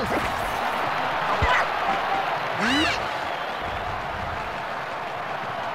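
A stadium crowd cheers steadily in the background.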